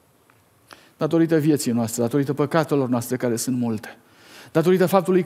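A middle-aged man speaks clearly into a microphone, with pauses.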